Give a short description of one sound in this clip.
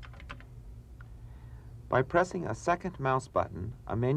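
A mouse button clicks.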